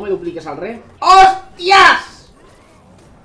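A young man shouts loudly in excitement.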